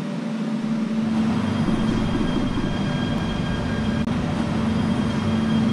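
A train hums and rumbles as it starts moving and picks up speed.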